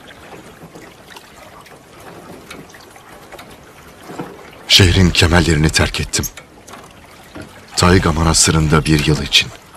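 Oars creak and splash in the water.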